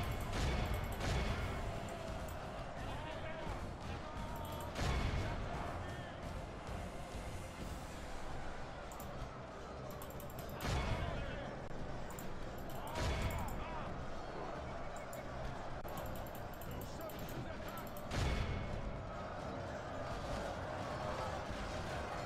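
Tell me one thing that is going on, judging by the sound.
A large crowd of soldiers clamours and clashes in a battle.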